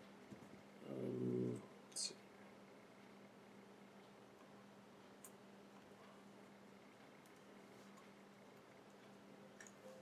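Hands handle a small metal device with faint clicks and taps.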